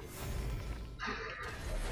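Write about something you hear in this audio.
An arrow whooshes from a bow.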